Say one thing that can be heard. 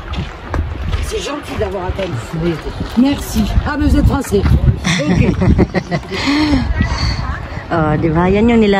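A young woman talks nearby outdoors.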